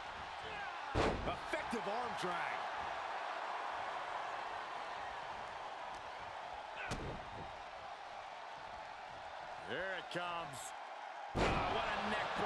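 Bodies slam hard onto a wrestling ring mat.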